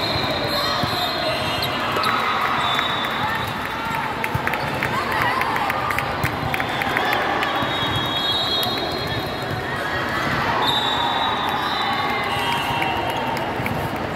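A crowd of voices echoes through a large hall.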